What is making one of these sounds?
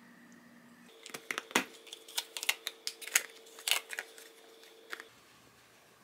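Plastic lids snap onto containers with sharp clicks.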